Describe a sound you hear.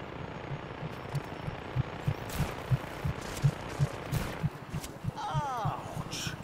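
An assault rifle fires in rapid shots.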